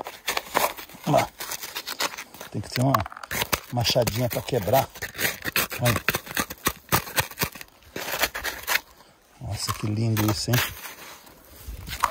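A trowel scrapes and digs into gravelly soil.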